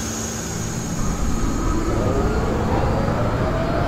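A train's electric motors whine, rising in pitch as the train speeds up.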